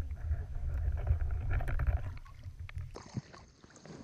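Water rumbles dully, heard from underwater.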